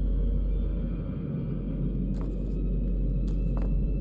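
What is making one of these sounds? A sheet of paper rustles as it is picked up.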